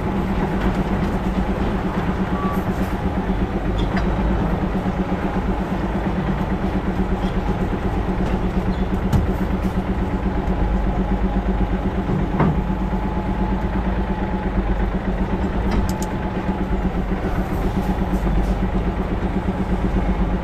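A loaded trailer rattles and clanks as it rolls.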